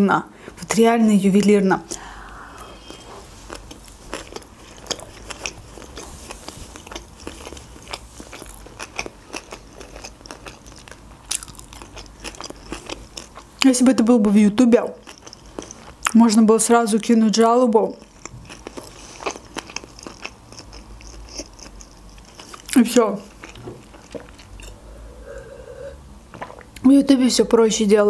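A young woman talks softly and expressively close to a microphone.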